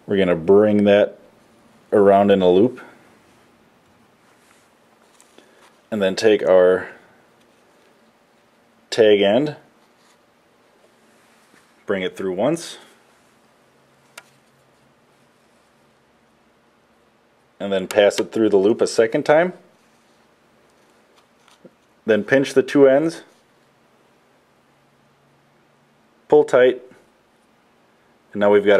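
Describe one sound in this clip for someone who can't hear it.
A thin cord rustles softly as it is tied into a knot.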